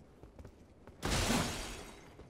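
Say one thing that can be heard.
A heavy sword blow lands with a loud whoosh.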